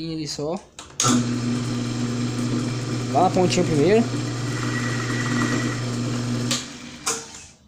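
A lathe motor hums steadily as the chuck spins.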